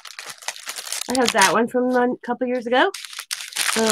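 A plastic packet crinkles.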